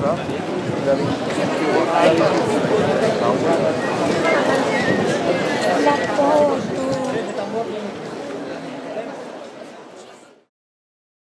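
A crowd of men and women chatters nearby, then fades away.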